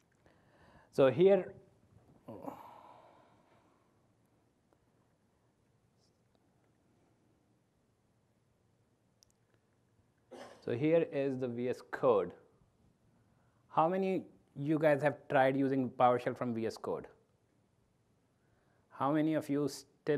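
A young man speaks into a microphone, pausing between phrases.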